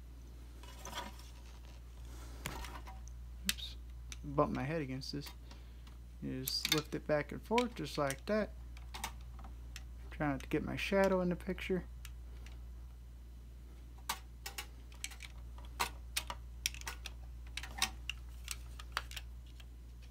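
Plastic parts click and snap together in sharp taps.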